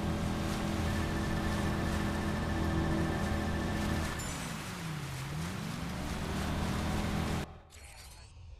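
A speedboat engine roars loudly.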